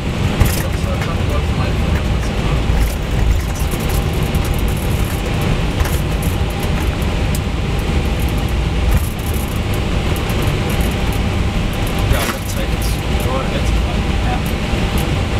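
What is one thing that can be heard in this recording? The airliner's wheels rumble and thump over the runway.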